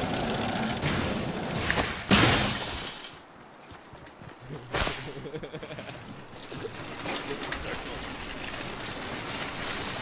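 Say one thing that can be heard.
A cart's wheels rattle as the cart rolls over the ground.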